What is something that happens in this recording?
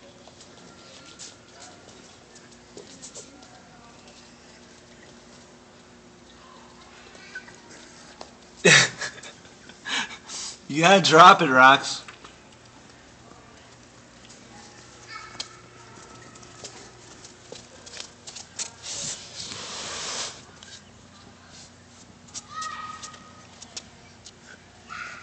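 A plastic cup taps and scrapes lightly against hard surfaces.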